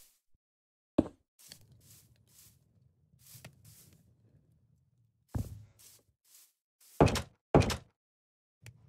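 A wooden door clacks open and shut several times.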